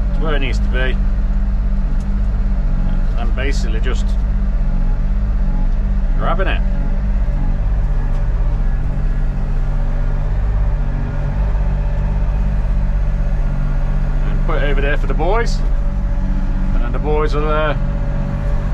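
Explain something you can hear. A digger's diesel engine rumbles steadily close by.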